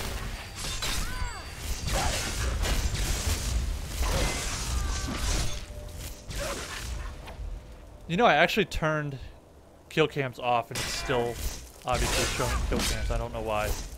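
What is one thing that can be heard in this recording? Magic spells crackle and hiss in bursts.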